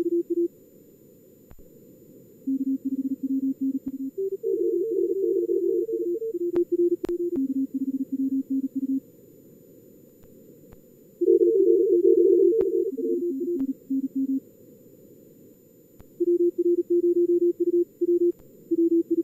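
Morse code tones beep in quick bursts at several different pitches.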